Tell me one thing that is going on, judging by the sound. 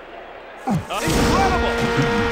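A goal horn blares loudly.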